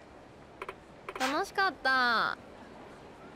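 A young woman speaks playfully in a short voiced phrase.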